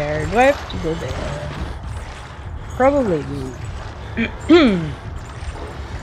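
A young woman makes drawn-out, wavering vocal sounds close to a microphone.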